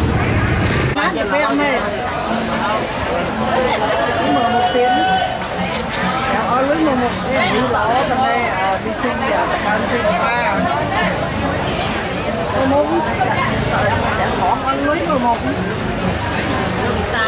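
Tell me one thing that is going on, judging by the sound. Many voices chatter in a busy outdoor market.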